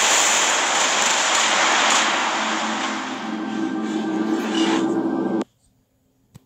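Loud game music plays and then cuts off abruptly.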